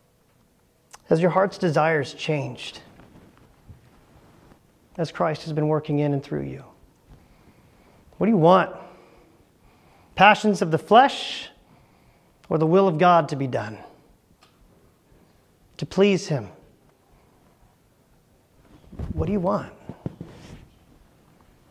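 A man speaks to an audience through a microphone in a large room, in short phrases with pauses.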